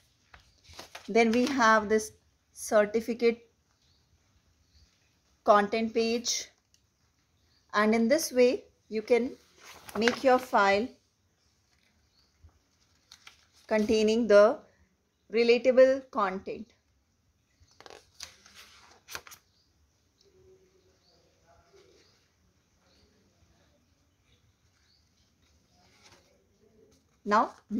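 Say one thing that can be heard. Paper pages rustle and flap as they are turned by hand.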